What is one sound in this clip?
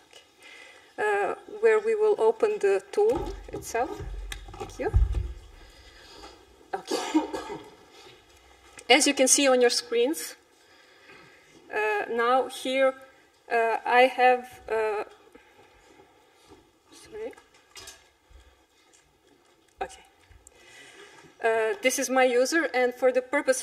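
A woman speaks calmly into a microphone, pausing often.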